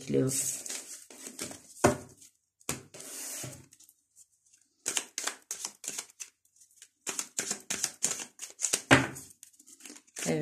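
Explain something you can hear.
Playing cards are shuffled with quick, dry riffling.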